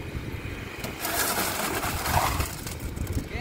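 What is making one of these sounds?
A load of wet concrete pours out of a tipped wheelbarrow with a rushing scrape.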